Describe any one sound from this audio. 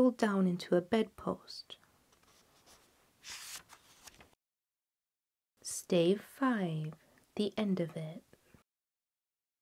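A young woman reads aloud softly and expressively, close to a microphone.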